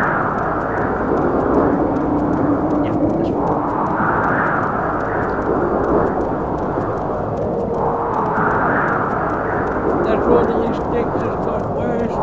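Strong wind roars and howls steadily.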